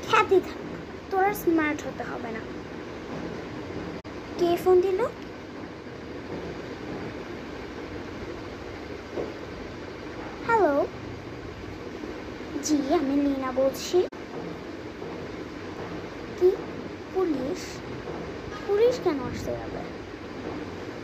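A young girl speaks expressively close by, in short phrases with pauses.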